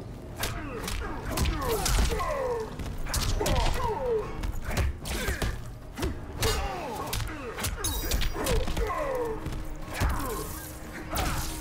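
Punches and kicks land with sharp thuds and cracks.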